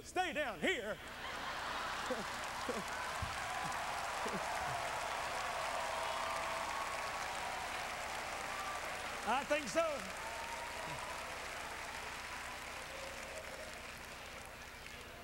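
A large audience laughs and applauds.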